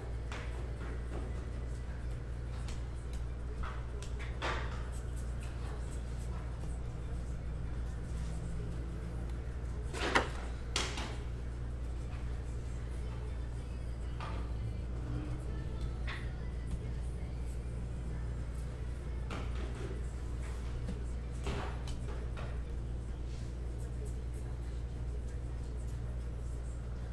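Trading cards flick and shuffle between fingers.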